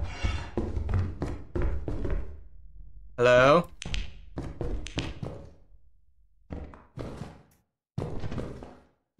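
Footsteps thud quickly on a hard floor, echoing slightly.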